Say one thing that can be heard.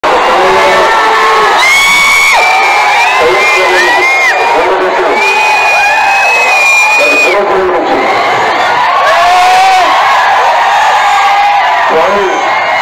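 A large crowd cheers and whistles.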